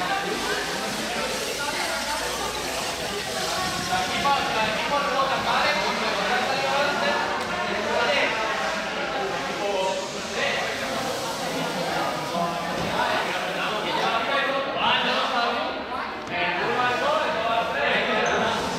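Young men talk and call out in an echoing hall.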